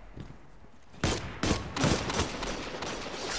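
Gunshots crack loudly in quick succession.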